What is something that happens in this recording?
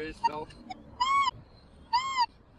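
A metal detector gives short warbling beeps.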